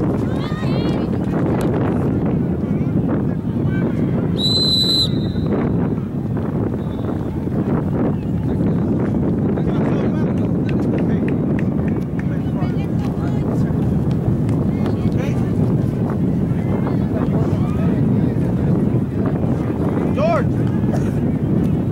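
Children and adults shout and call out across an open field outdoors.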